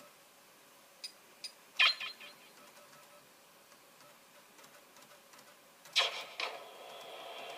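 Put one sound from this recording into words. Short sound effects from a video game chime through a television speaker.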